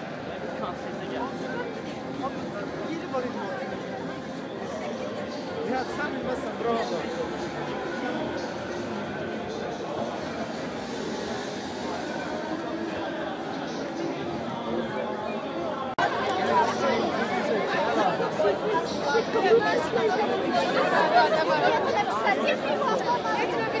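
A crowd of young people chatters all around, close by, outdoors.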